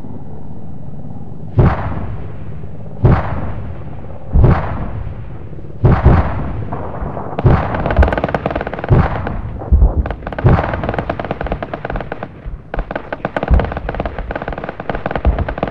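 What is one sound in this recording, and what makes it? Rockets whoosh past in quick succession.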